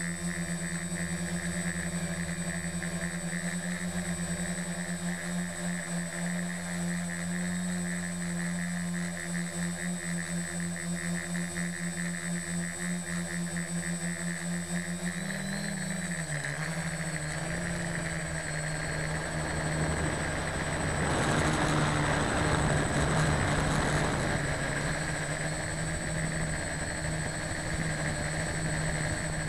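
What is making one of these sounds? An aircraft engine drones steadily throughout, its pitch shifting briefly partway through.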